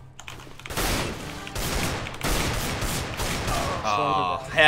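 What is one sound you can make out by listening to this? Loud rifle shots crack and echo.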